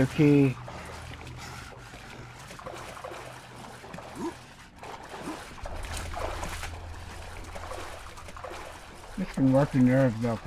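Water splashes and laps as a swimmer strokes through it.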